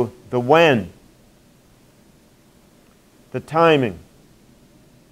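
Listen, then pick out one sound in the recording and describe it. An elderly man speaks in two short, lively bursts nearby.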